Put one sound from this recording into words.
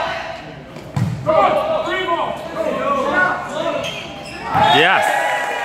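A volleyball is struck with a dull thump.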